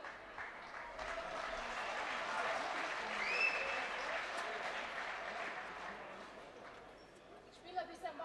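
A crowd murmurs and chatters in a large hall.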